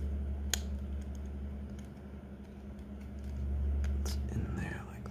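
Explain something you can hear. Plastic parts click and tap as a small device is handled and taken apart.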